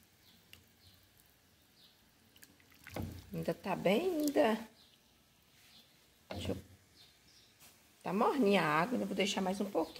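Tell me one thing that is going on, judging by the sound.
A spoon stirs thick liquid in a metal pot.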